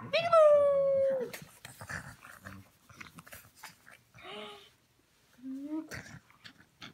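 A baby squeals and coos close by.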